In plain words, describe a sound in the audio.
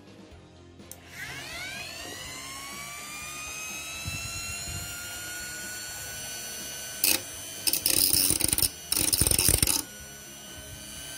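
A small rotary tool whirs up to speed with a high, steady whine.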